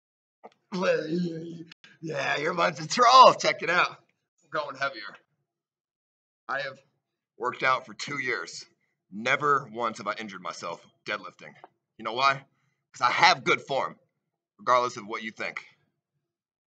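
A young man talks close to the microphone with animation.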